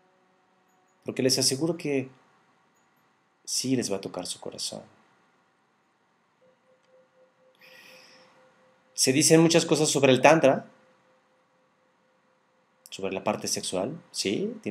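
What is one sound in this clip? A man speaks calmly and close to a microphone, pausing between phrases.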